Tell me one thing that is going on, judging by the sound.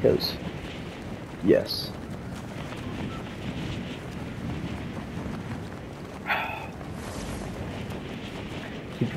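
Wind rushes steadily past a gliding character.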